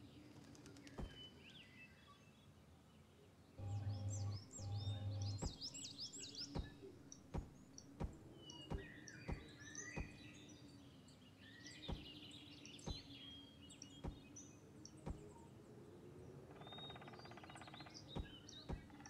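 Blocks click into place one after another.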